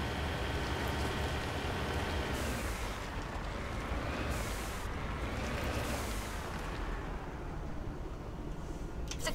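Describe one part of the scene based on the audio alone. A vehicle engine whines and rumbles steadily as it drives over rough ground.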